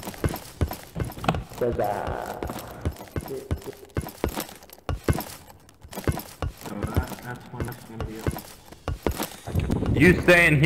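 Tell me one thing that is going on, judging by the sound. Quick footsteps patter on a hard metal floor.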